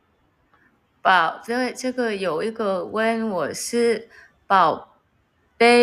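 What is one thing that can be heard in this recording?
A young woman talks with animation, close by.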